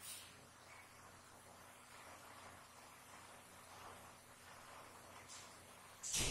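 A marker squeaks faintly on a whiteboard.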